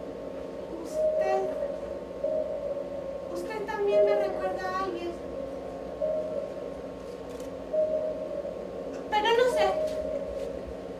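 A young woman speaks theatrically through a microphone.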